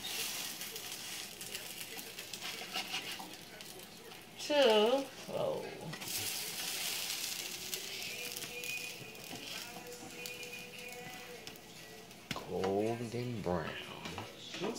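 Batter sizzles softly in a hot frying pan.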